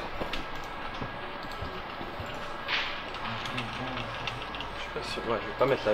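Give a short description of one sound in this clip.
Keyboards click as players type.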